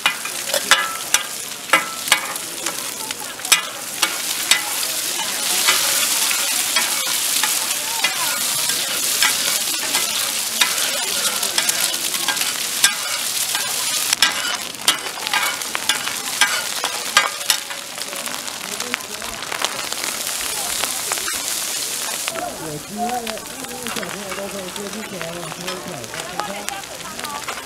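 Eggs sizzle loudly in hot oil.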